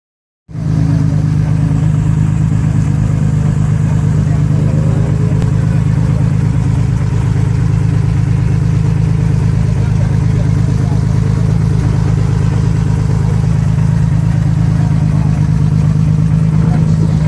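A loud engine idles with a steady, throbbing rumble close by.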